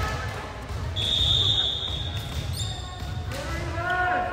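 A referee's whistle blows with a long shrill tone.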